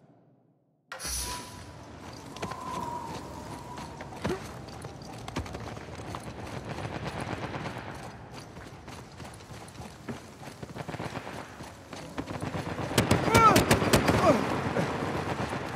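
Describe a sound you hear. Footsteps crunch over gravel and rock.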